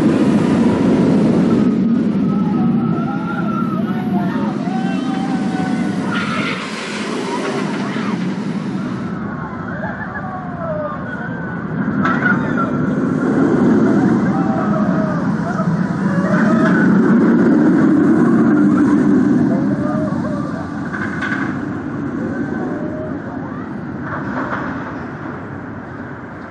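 Riders scream and shriek on a roller coaster.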